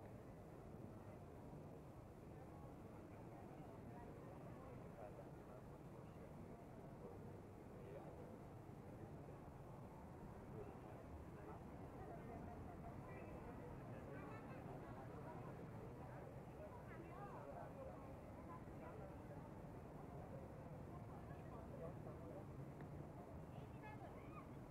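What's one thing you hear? A crowd of people chatter outdoors at a distance.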